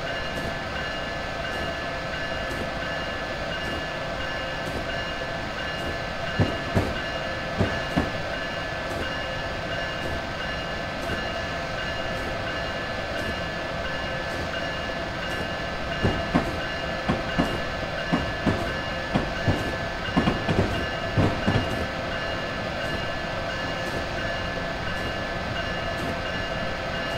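A train's motor hums steadily as the train runs along.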